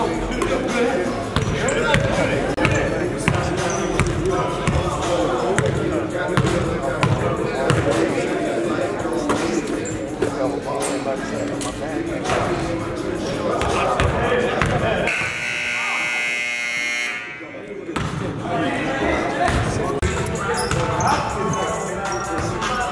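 Men call out to each other across an echoing gym.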